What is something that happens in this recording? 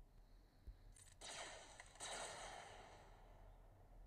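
A lightsaber swings with a buzzing whoosh.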